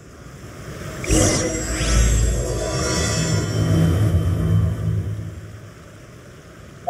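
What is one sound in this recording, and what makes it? A shimmering magical chime swells and rings out.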